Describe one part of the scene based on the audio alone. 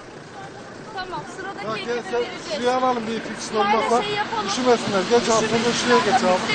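Several men talk loudly and excitedly close by.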